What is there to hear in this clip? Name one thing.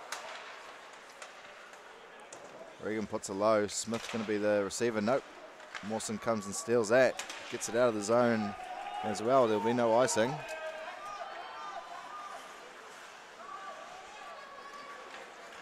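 Ice skates scrape and glide across the ice.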